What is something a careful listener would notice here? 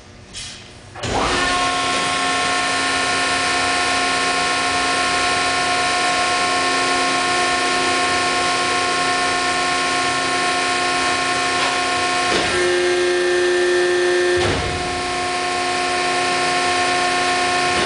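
A large hydraulic press starts up and hums steadily with a loud motor drone.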